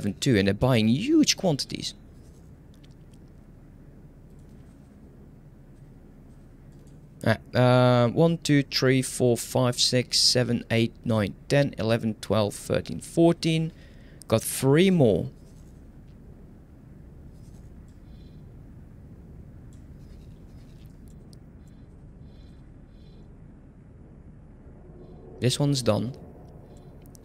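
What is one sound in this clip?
A young man talks calmly and closely into a microphone, in short bursts with pauses.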